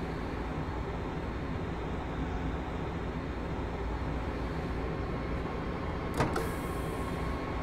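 A train engine hums and rumbles steadily as the train rolls along the track.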